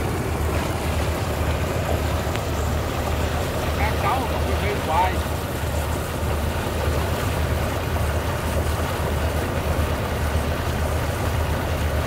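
Muddy water bubbles and gurgles up from the ground.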